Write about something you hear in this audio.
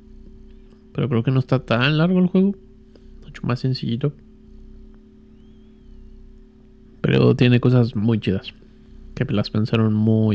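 A man talks animatedly into a close microphone, in short bursts.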